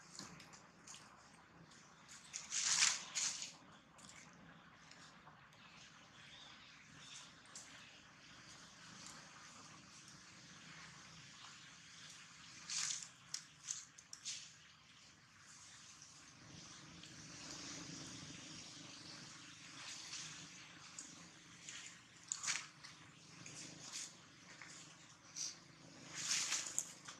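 Dry leaves rustle and crunch as small monkeys shift about on the ground.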